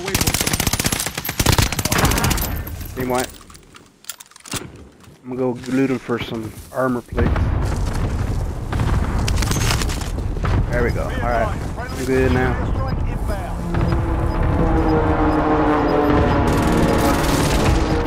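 Footsteps crunch quickly over dry ground.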